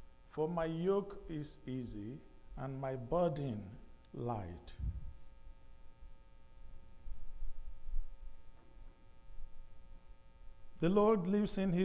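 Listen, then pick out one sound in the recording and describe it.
An adult man chants prayers aloud in a large echoing hall.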